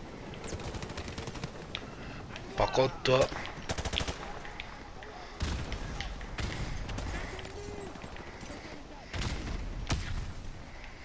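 Rifle fire rattles in rapid bursts.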